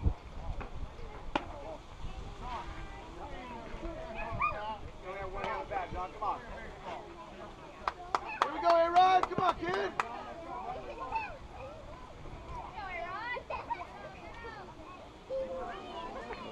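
Children shout and cheer outdoors at a distance.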